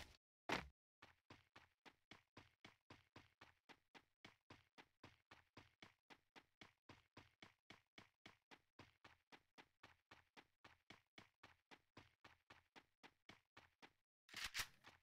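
Footsteps patter quickly and steadily over grass.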